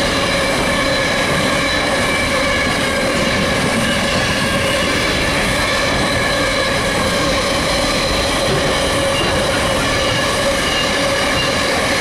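Train wheels squeal with steady high tones.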